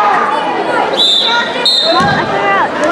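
A referee blows a whistle twice.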